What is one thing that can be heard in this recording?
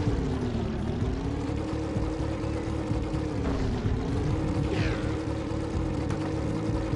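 A small engine hums steadily, its pitch sagging and rising a little.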